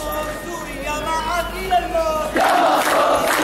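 A man's voice leads a chant loudly.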